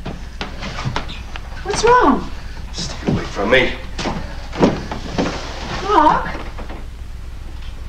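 A woman speaks tensely close by.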